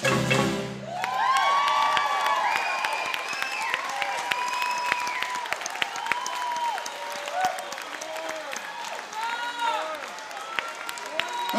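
A crowd cheers and whoops loudly in a large echoing hall.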